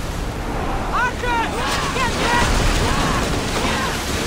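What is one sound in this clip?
Men shout loudly on a ship's deck.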